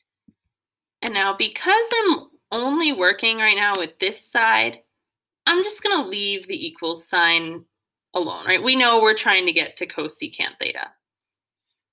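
A young woman speaks calmly through a computer microphone.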